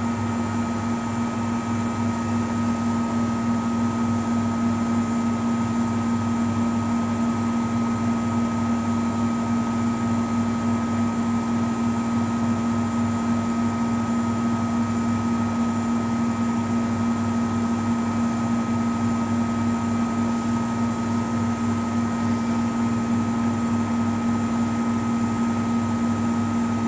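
Water sloshes inside the drum of a front-loading washing machine.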